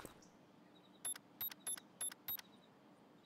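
A bomb beeps rapidly as it is armed.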